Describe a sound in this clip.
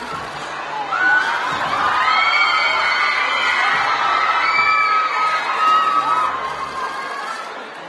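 A crowd of young fans cheers and screams excitedly.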